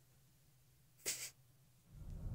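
Electricity crackles and buzzes briefly.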